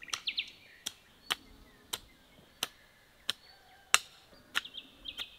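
A hoe chops into soil.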